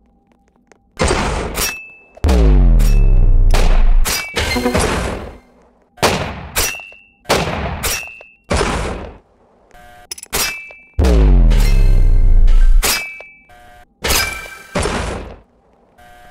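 Loud booming blasts from a video game ring out and fade, one after another.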